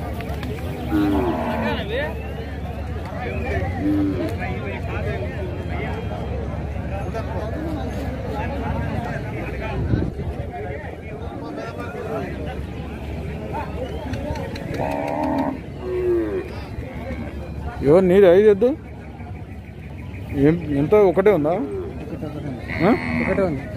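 A crowd of people chatters outdoors in the background.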